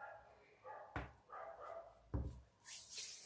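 A clay pot knocks as it is set down on a table.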